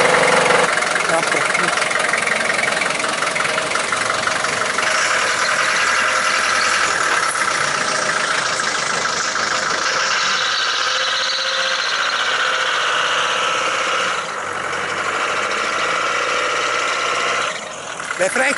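An old vehicle's diesel engine rumbles steadily close by.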